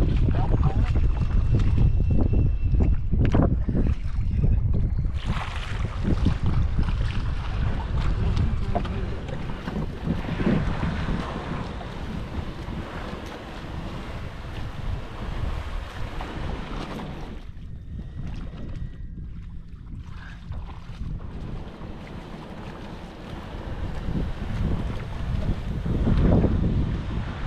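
Wind blusters into the microphone outdoors.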